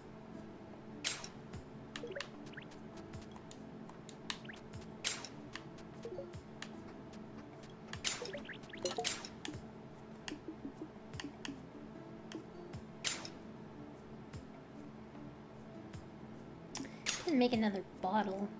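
Short bright game blips sound now and then.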